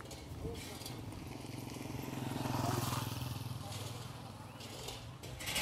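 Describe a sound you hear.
A motorcycle engine hums as it passes close by.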